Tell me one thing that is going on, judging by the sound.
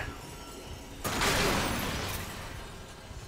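Glass shatters with a loud crash.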